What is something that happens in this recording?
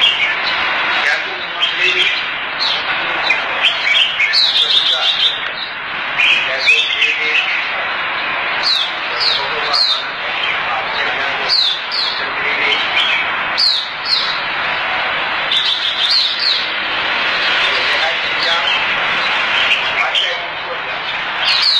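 Many caged birds chirp and twitter busily, with sharp calls cutting through.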